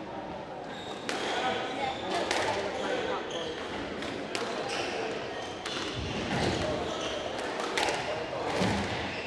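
A squash ball smacks sharply against the walls and racket.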